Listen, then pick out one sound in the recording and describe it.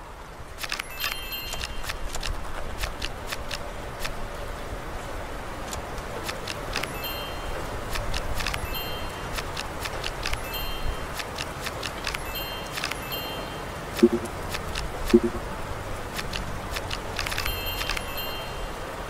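Cards snap into place with short game clicks and chimes.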